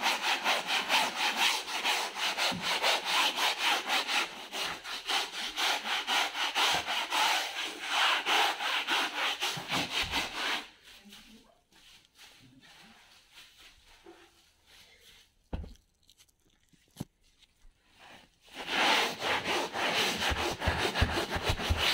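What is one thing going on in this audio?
A stiff-bristled brush scrubs back and forth over fabric upholstery.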